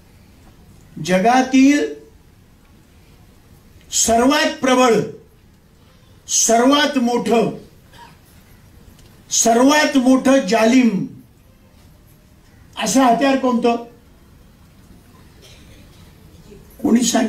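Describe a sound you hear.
An elderly man speaks into a microphone in short, forceful bursts with pauses between them.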